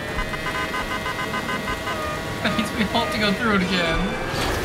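Electronic countdown beeps sound before a race start.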